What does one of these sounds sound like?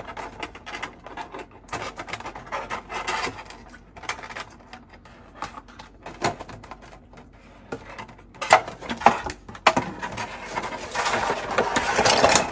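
Plastic packaging crinkles and clicks as hands handle it.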